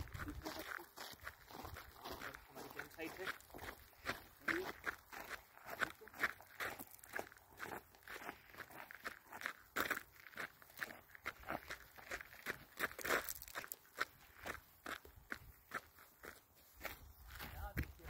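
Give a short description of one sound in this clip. Footsteps crunch steadily on gravel.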